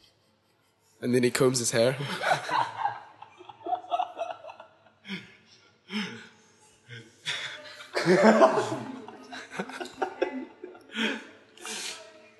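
Several young men laugh close by.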